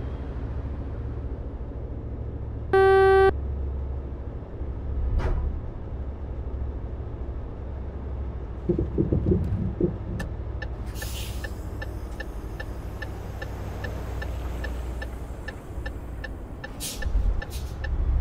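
A vehicle engine hums steadily at low pitch.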